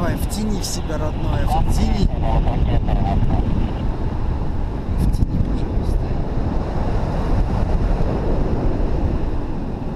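Strong wind rushes and buffets past a microphone high in the open air.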